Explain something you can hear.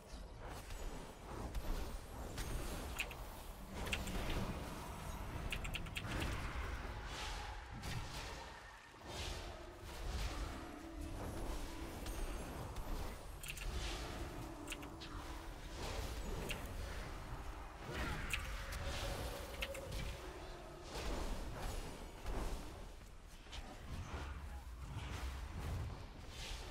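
Spell blasts and combat effects crackle and whoosh throughout a game battle.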